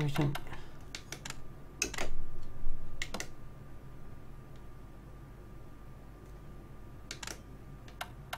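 Short menu clicks tick now and then.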